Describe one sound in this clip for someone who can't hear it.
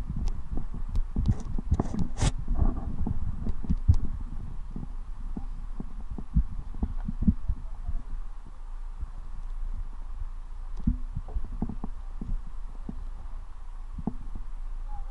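Diving gear knocks and clatters on a wooden deck.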